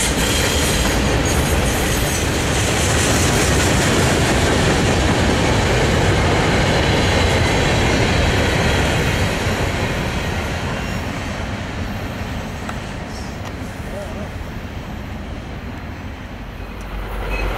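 A freight train rumbles and clatters past close by, then fades into the distance.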